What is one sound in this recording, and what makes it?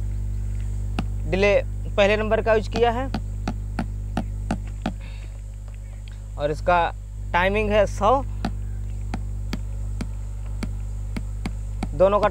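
An electronic drum pad plays a steady clicking beat.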